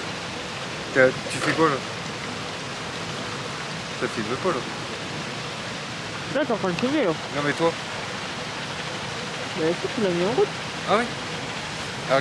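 A young man talks calmly and close by, outdoors.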